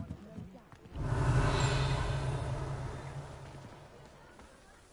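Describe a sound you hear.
A magic spell bursts with a loud crackling boom.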